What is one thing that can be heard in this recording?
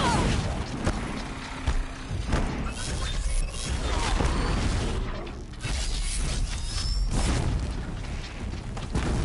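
Heavy mechanical creatures stomp and clank.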